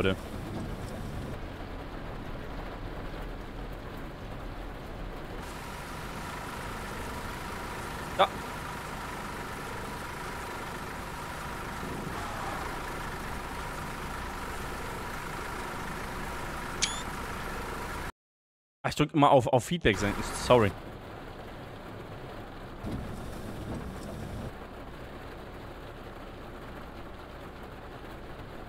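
Heavy rain patters steadily.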